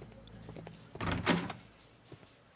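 A door opens with a loud creak.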